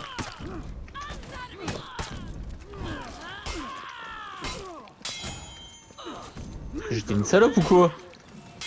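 Swords whoosh through the air in quick swings.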